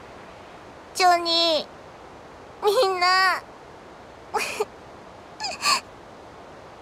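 A young woman speaks in short, tearful phrases and sniffs.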